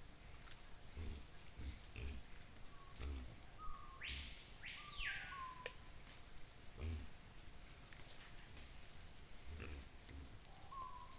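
Wild pigs grunt low and softly, close by.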